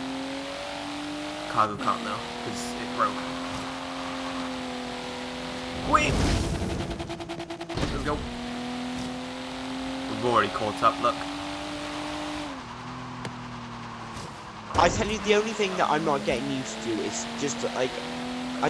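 A car engine hums steadily at high speed, its pitch shifting with gear changes.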